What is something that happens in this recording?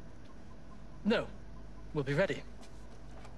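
A man answers briefly and calmly.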